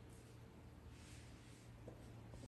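Cloth rustles close to a microphone.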